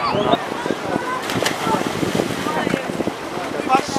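A boy splashes into the water.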